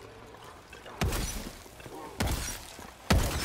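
Loud gunshots fire in bursts.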